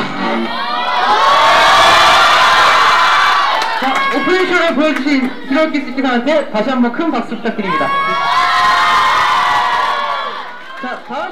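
A crowd screams and cheers excitedly.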